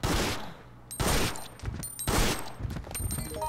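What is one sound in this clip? A handgun fires sharp shots.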